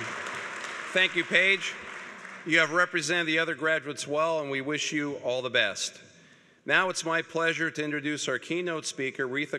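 An older man speaks calmly through a microphone and loudspeakers.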